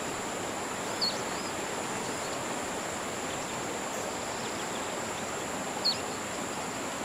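A bird chirps briefly in the distance.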